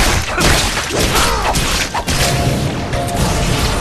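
A heavy impact bursts with a crash.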